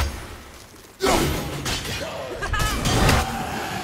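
An axe is thrown and whooshes through the air.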